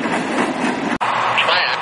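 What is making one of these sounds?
A loader's diesel engine runs nearby.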